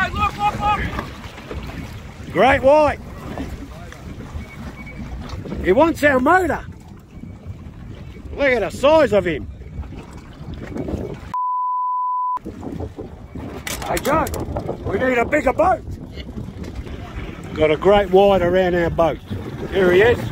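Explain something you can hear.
Water slaps and splashes against the side of a boat.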